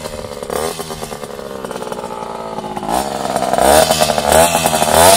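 A small motorcycle engine buzzes and revs up and down close by.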